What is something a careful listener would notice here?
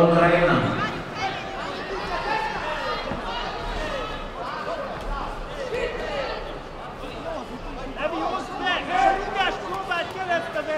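A man shouts loudly from ringside in an echoing hall.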